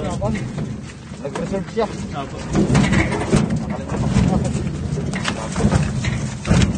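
A metal cart rattles and clanks over a bumpy dirt track.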